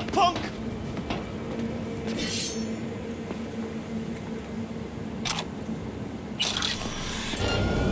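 Footsteps scuff along hard ground.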